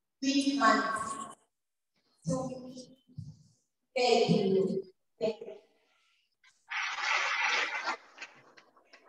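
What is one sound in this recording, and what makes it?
A young girl speaks into a microphone over a loudspeaker.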